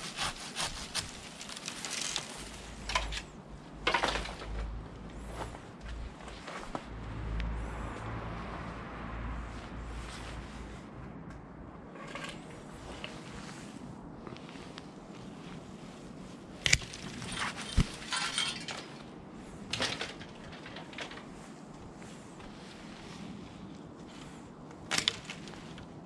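Leaves and twigs rustle as branches are handled.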